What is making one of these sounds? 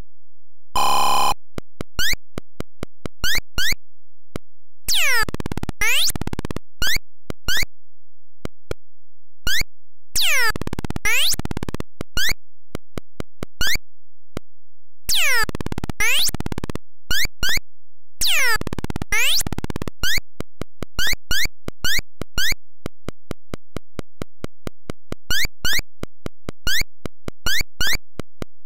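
Retro computer game beeps tick rapidly as a character moves.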